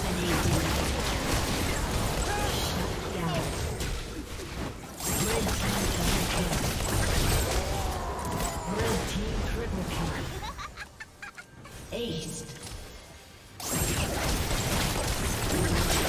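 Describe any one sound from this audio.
Video game spell effects crackle and burst during a fight.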